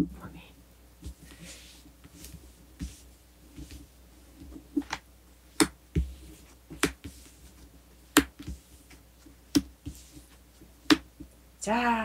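Playing cards are laid down and tapped on a table, one after another.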